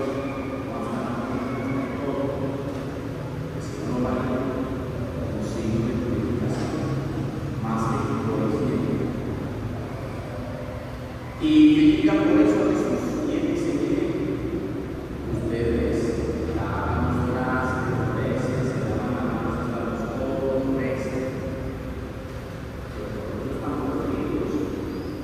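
A man speaks over a loudspeaker, his voice echoing through a large hall.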